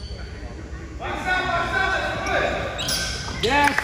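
Young people cheer and shout loudly in an echoing hall.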